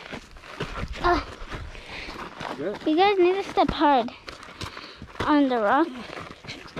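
A young girl talks excitedly close by, her voice slightly muffled by a mask.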